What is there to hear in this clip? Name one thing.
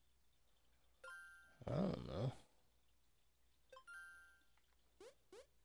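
Short electronic menu chimes ring out.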